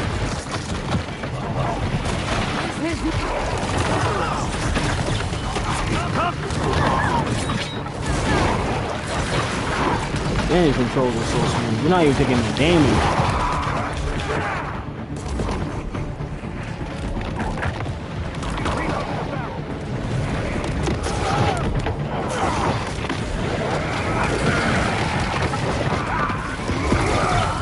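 Punches and impacts thud from a video game fight.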